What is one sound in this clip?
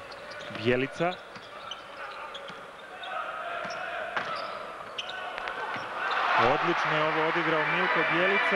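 A crowd cheers in a large echoing arena, growing louder.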